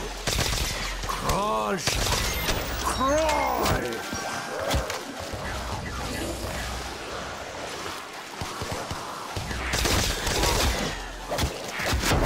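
A futuristic gun fires sharp zapping shots.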